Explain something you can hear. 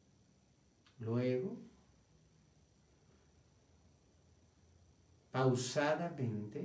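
A man speaks slowly and calmly close to a microphone, in short phrases with long pauses.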